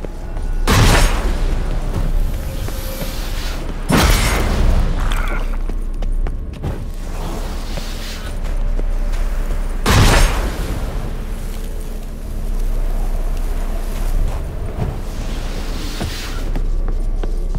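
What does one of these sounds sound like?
Wind howls and gusts outdoors.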